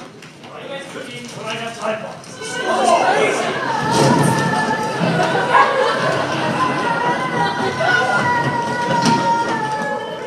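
Young people stomp and shuffle their feet across a wooden stage.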